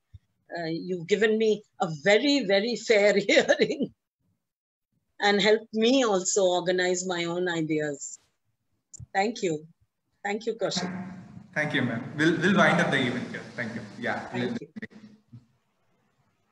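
An elderly woman speaks with animation over an online call.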